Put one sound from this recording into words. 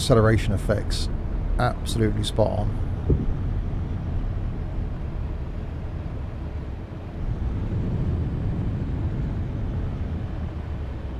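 A bus engine hums low and steady.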